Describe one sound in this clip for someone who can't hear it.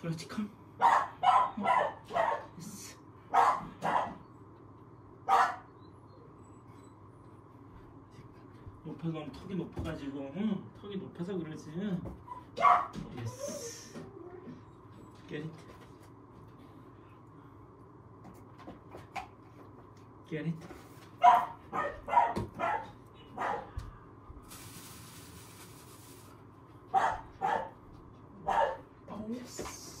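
A small dog barks sharply in short bursts.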